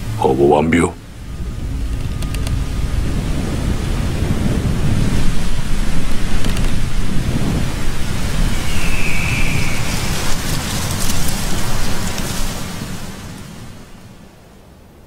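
Wind blows across an open field.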